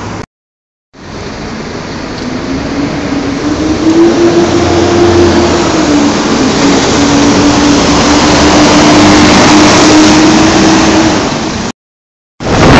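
A double-decker bus engine drones and whines as it pulls up close by.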